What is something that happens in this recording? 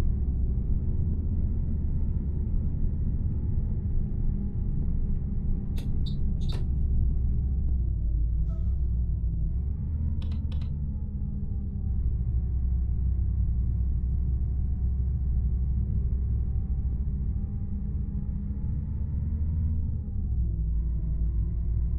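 A bus engine drones steadily, its pitch rising and falling with the speed.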